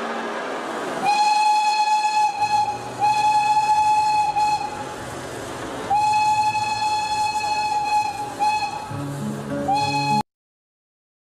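A train horn blows in long, repeated blasts.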